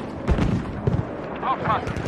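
A heavy machine gun fires rapid bursts.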